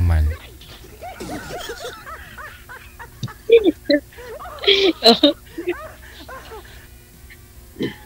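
A middle-aged woman laughs over an online call.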